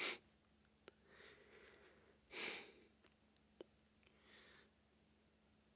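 A young man speaks softly.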